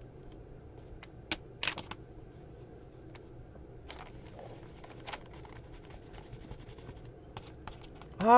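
Paper pages rustle and flip.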